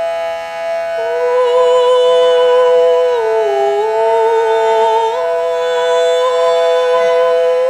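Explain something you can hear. A woman sings a long, wavering note close to a microphone.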